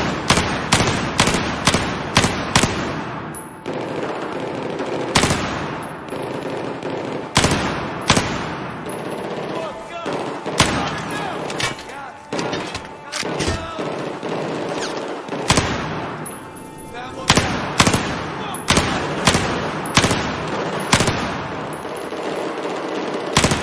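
Rifle shots fire in sharp bursts, echoing in a large hall.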